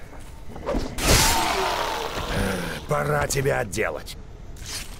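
Heavy blows thud and squelch into a body.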